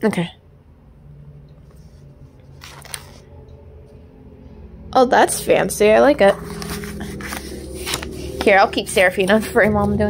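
Stiff paper rustles softly as an envelope is handled.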